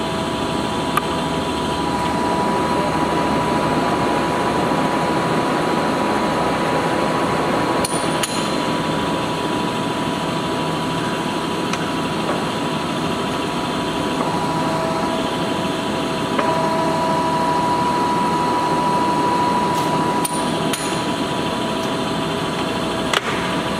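Metal levers clunk as they are shifted.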